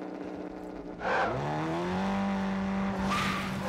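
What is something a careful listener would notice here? An off-road buggy engine starts and revs up as it drives off.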